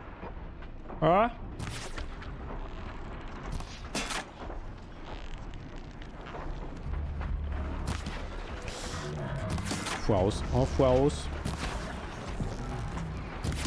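Game sound effects of bow shots and impacts ring out.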